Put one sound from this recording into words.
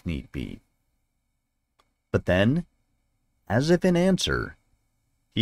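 A man reads aloud with animation, close to a microphone.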